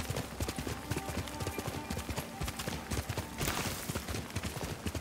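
A horse gallops with heavy, rapid hoofbeats on grass.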